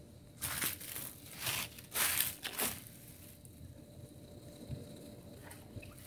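Wet hair swishes as it is wrung out.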